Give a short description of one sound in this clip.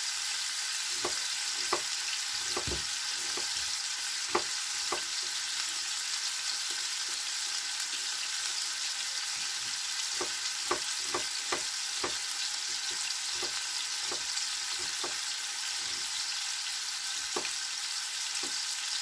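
A knife chops on a cutting board in sharp, uneven taps.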